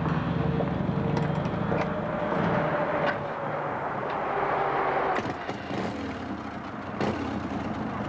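A man kicks at a motorcycle's starter to start its engine.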